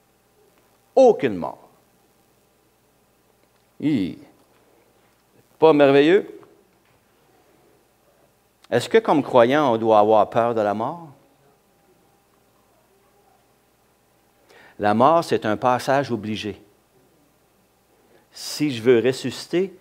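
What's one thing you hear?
An older man speaks with expression through a microphone, in short bursts with pauses.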